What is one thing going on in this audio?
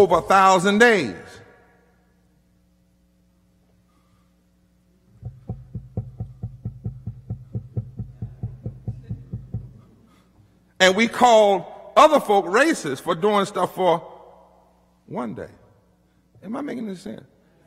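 A man preaches with fervour through a microphone, his voice rising and falling.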